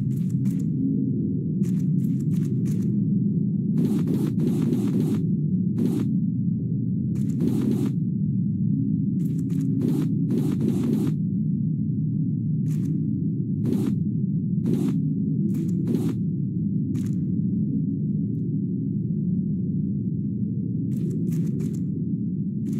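Short soft pops sound as small items are picked up.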